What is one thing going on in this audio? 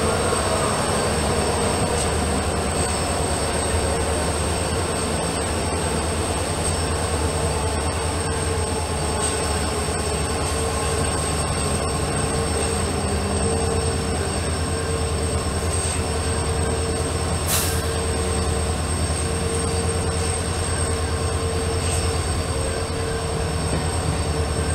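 Train wheels clatter rhythmically over the rails.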